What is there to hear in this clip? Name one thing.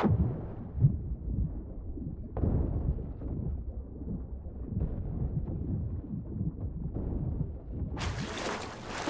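Muffled water sloshes and rumbles as a swimmer moves underwater.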